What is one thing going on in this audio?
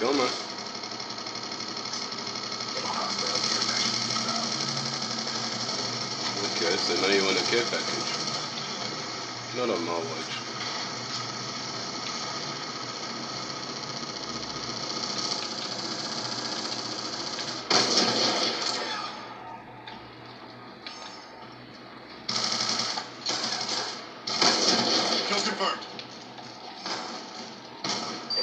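Gunfire from a video game rattles in quick bursts.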